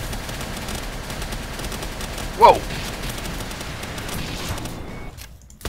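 Magic blasts crackle and explode in rapid bursts.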